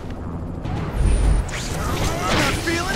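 Heavy blows thud as a fighter kicks an opponent.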